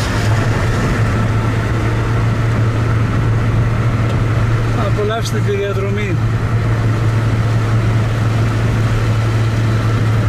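A car drives along a road, heard from inside with a steady low hum.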